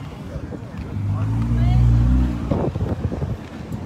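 A car engine rumbles as a car drives past nearby.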